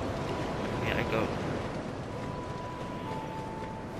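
Footsteps thud on dry ground outdoors.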